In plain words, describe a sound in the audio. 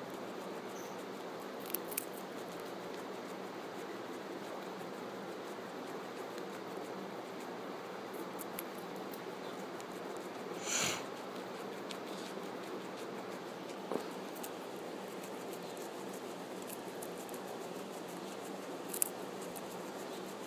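A guinea pig crunches and nibbles on a carrot up close.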